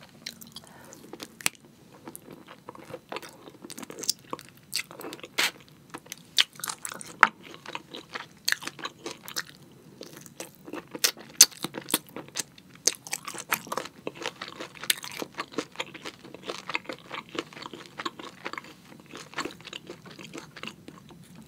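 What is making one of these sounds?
A young woman chews food wetly and crunchily close to a microphone.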